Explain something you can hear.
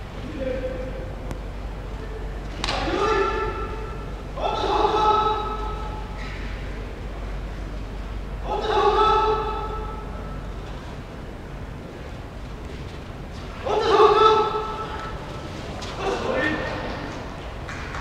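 A man calls out in long, loud cries in an echoing hall.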